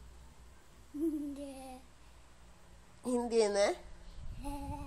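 A young child laughs and squeals close by.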